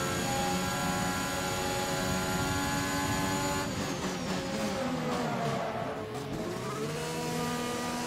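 A racing car engine screams at high revs, then winds down sharply.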